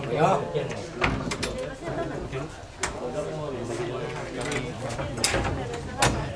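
A door handle rattles and knocks.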